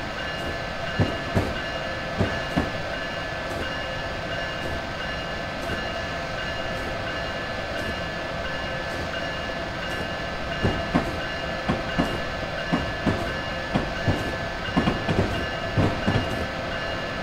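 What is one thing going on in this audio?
Train wheels clatter in knocks over rail joints.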